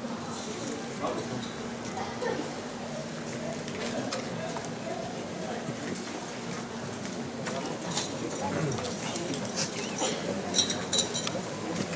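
A crowd murmurs and talks quietly outdoors.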